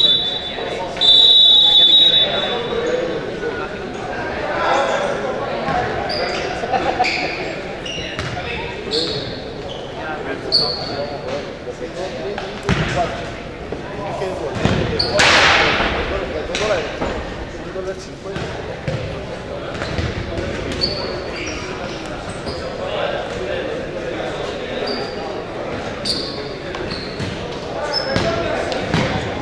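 Players shout to each other across an echoing hall.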